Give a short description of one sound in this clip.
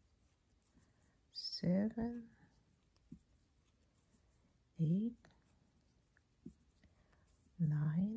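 A crochet hook clicks softly as it pulls yarn through.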